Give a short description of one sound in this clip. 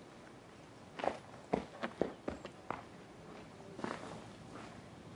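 A climber's shoes scrape and tap against rock.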